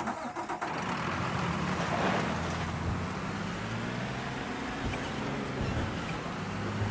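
A heavy truck engine rumbles and revs as it drives off.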